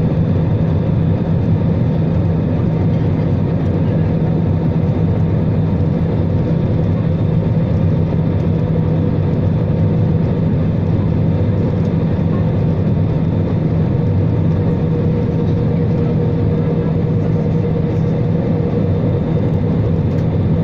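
Jet engines roar steadily with a low, constant hum inside an aircraft cabin.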